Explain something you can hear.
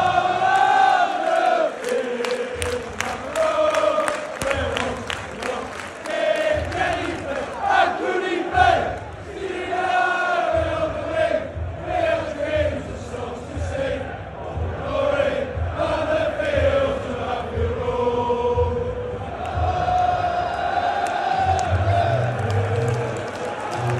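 A large crowd sings loudly together in a big open stadium.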